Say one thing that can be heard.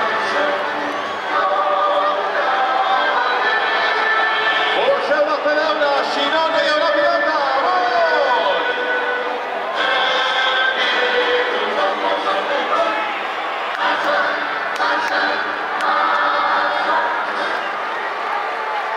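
A large stadium crowd cheers and chants loudly in a wide open space.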